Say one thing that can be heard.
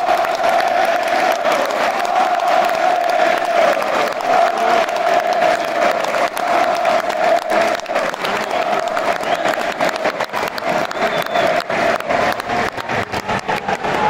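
A large crowd claps in rhythm.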